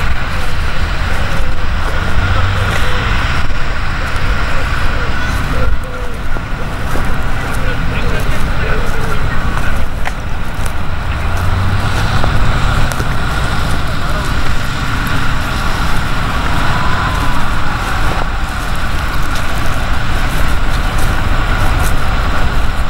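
Wind blows hard and gusts across an open field.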